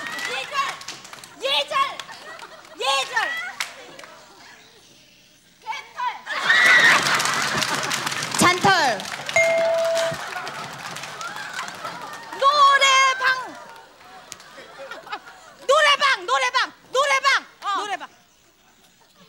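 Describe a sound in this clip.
Young women speak loudly and excitedly into microphones, one after another.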